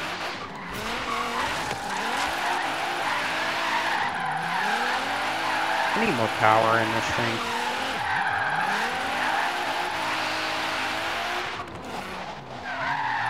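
A car engine revs high and rises and falls as the car drifts.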